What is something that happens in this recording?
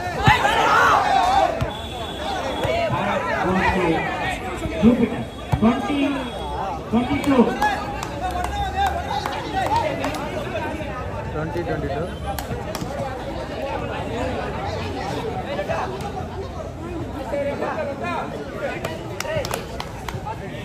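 A crowd of onlookers chatters in the background.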